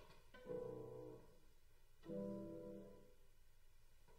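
A violin plays the last notes of a piece.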